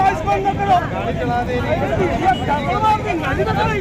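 A woman speaks up angrily, close by.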